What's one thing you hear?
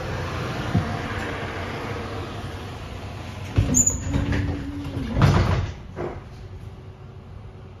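A bus drives off with an engine rumble.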